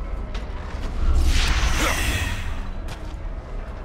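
A heavy chain rattles and clanks.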